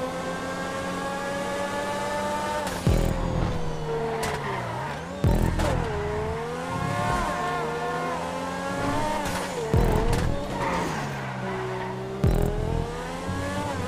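A car engine revs high and shifts gears as the car races.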